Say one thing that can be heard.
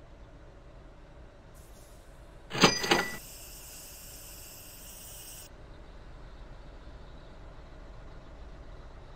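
A bus engine idles steadily.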